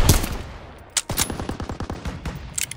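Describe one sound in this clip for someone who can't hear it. Distant gunfire crackles in bursts.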